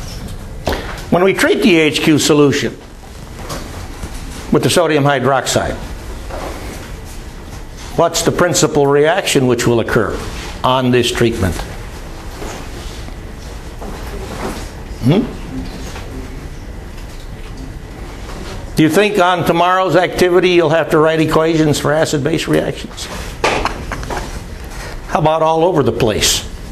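A man lectures in bursts, heard from across a room.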